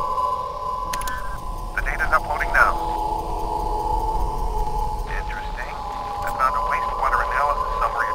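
A laptop gives off rapid electronic chirps and beeps.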